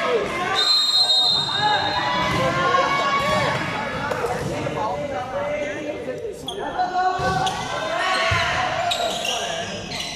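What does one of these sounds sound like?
A crowd of young spectators cheers and shouts loudly in an echoing indoor hall.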